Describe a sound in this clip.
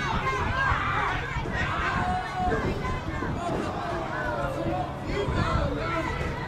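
An outdoor crowd cheers and shouts throughout.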